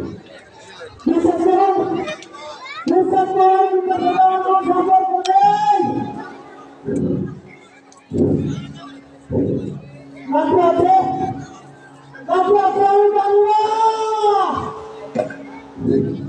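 Men sing loudly together in long held notes.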